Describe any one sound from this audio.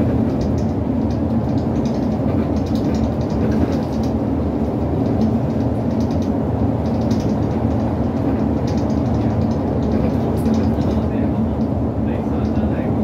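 A bus engine hums steadily as the bus drives along a road.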